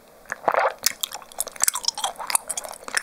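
A young woman whispers softly close to a microphone.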